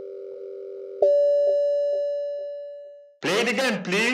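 An elevator chime rings and slowly fades.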